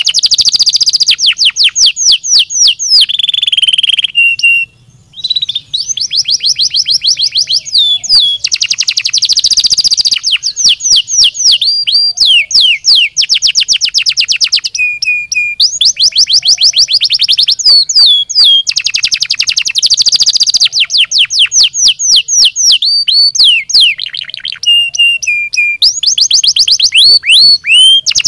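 A canary sings loud, rapid trills and chirps close by.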